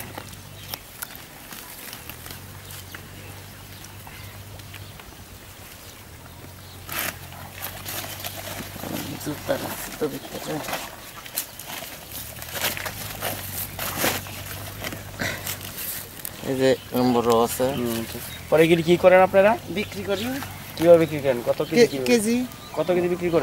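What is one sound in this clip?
Dry leaf wrapping crinkles and rustles as hands pull at it.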